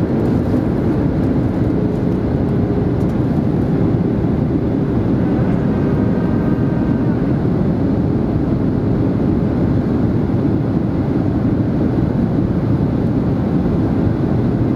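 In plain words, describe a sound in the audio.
A jet airliner's engines roar steadily, heard from inside the cabin during descent.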